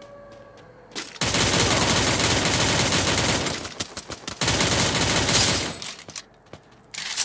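A rifle fires loud blasts.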